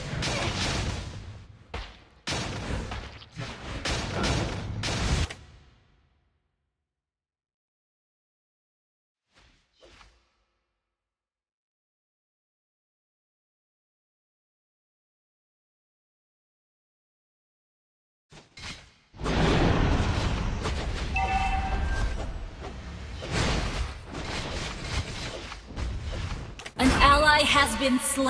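Game spell effects and weapon blows clash loudly in bursts.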